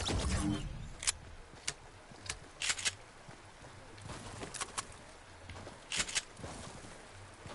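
Water splashes as a character wades.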